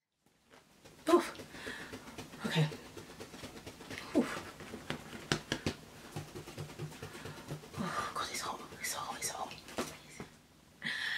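A young woman rustles and tugs at crisp fabric.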